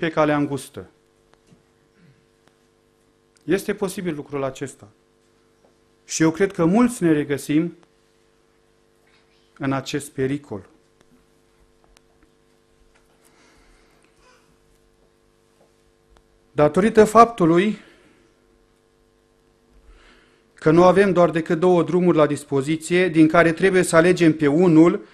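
A middle-aged man speaks slowly and earnestly into a microphone, with pauses between phrases.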